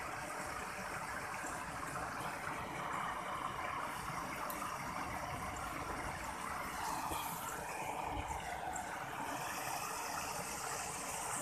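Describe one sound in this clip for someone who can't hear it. Wind blows across open ground outdoors.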